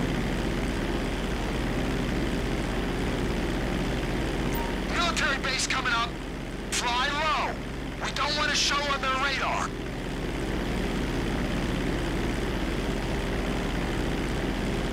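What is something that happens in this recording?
A propeller plane's engine drones steadily close by.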